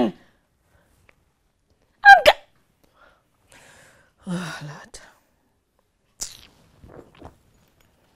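A young woman sobs and cries out in distress, close by.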